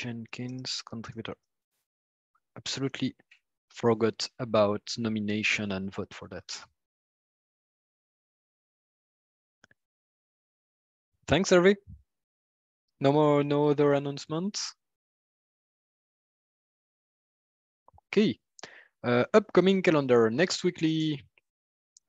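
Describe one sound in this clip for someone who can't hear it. A man speaks calmly into a microphone, pausing now and then.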